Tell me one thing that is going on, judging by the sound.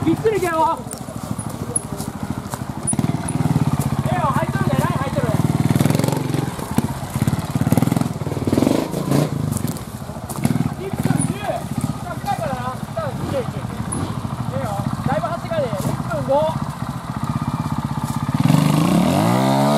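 A trials motorcycle engine putters and revs nearby.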